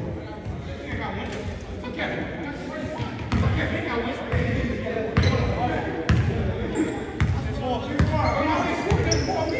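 Young men talk and call out to each other in an echoing hall.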